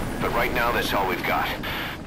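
Helicopter rotors thud overhead.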